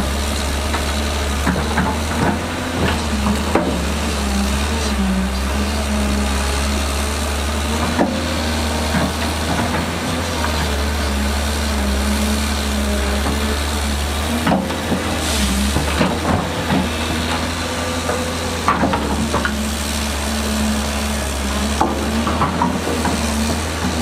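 A diesel engine of an excavator rumbles steadily.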